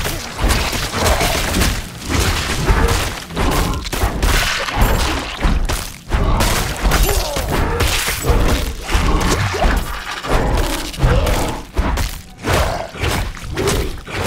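Giant spiders screech and hiss.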